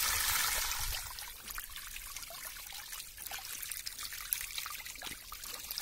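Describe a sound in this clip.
Small fish flick and patter in shallow water.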